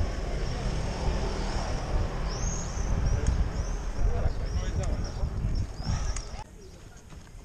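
Bicycle tyres rumble and rattle over cobblestones.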